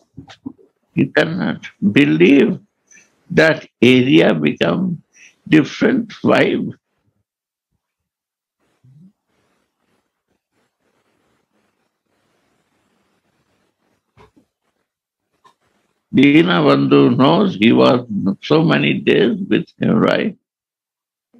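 An elderly man speaks calmly through a microphone in an online call, with long pauses.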